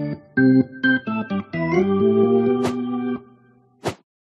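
Jaunty game music plays with short bouncy tunes.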